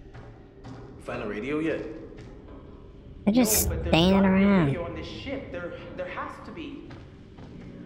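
A young man speaks in a low, tense voice nearby.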